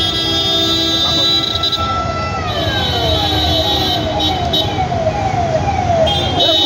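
Car engines rumble steadily in slow traffic.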